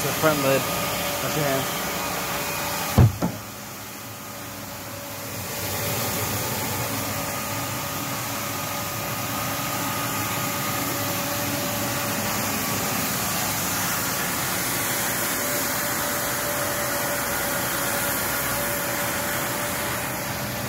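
A floor scrubber's motor hums steadily.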